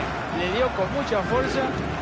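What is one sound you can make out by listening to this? A football is struck hard with a thump.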